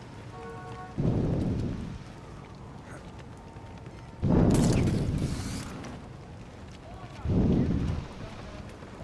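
A figure lands with heavy thuds on a rooftop.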